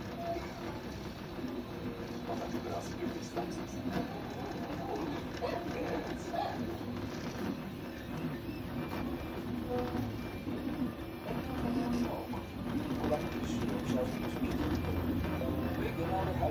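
A laser engraver's motors buzz and whir as the head moves in short bursts.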